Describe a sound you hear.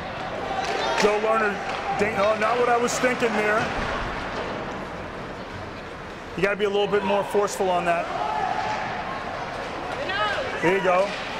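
A man shouts loudly, echoing in a large rink.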